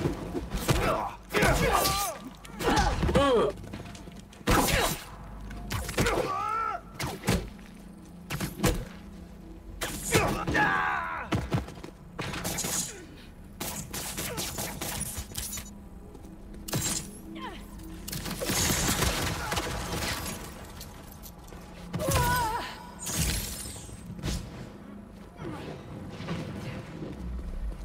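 Punches and kicks thud in a fast video game fight.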